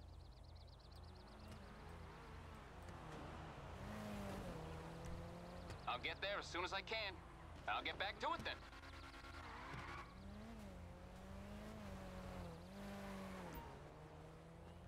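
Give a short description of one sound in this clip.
A car engine hums and revs on a nearby road.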